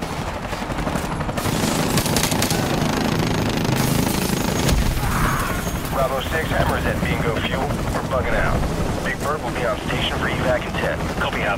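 A rifle fires several shots close by.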